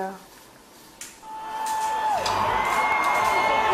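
A drum kit is played with crashing cymbals.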